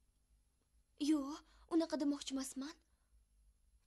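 A young woman answers quietly, close by.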